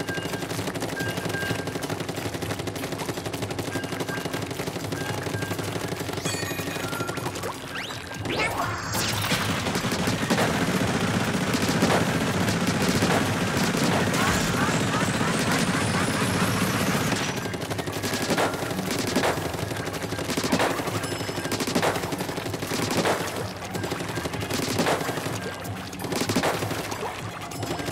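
A video game's ink gun fires in quick wet splats.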